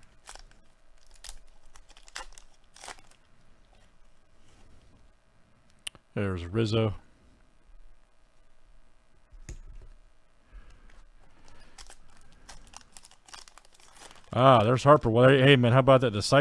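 A plastic wrapper crinkles and rustles as hands tear it open.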